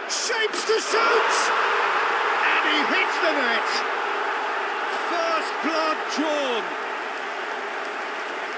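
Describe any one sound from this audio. A stadium crowd bursts into a loud cheering roar.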